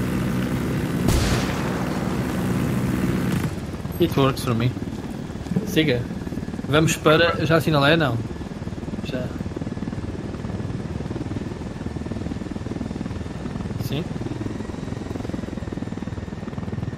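A helicopter engine hums and its rotor thrums steadily.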